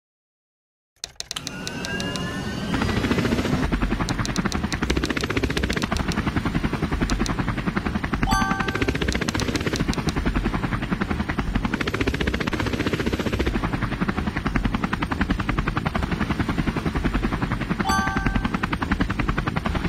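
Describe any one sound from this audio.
A helicopter's rotor chops rapidly and steadily.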